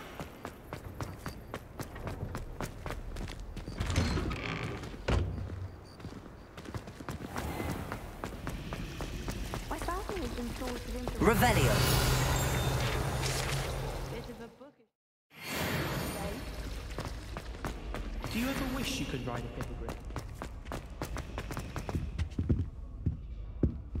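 Footsteps run quickly across a hard stone floor.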